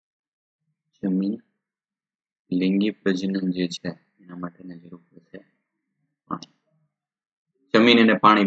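A man speaks calmly into a close microphone, explaining.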